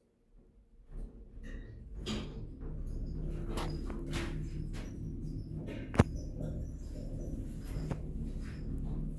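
An elevator car hums steadily as it travels.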